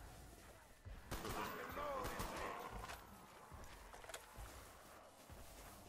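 A rifle fires with sharp cracks.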